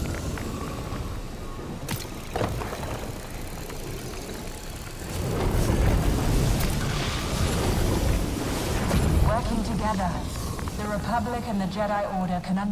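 A powerful energy beam crackles and roars.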